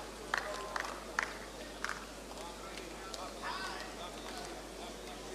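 A crowd murmurs and calls out.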